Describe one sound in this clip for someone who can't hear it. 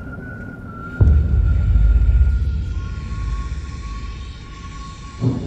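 A fire whooshes up and roars.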